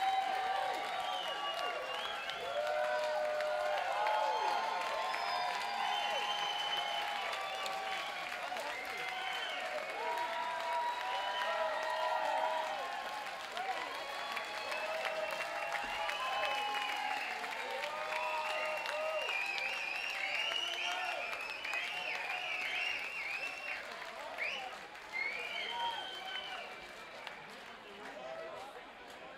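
A large crowd cheers and shouts loudly in a big hall.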